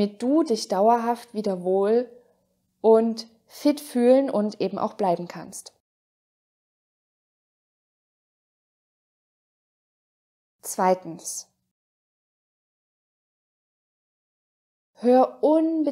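A young woman speaks calmly and close to a microphone, in phrases with pauses.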